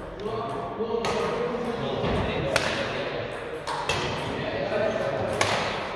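Rackets strike a shuttlecock back and forth in a large echoing hall.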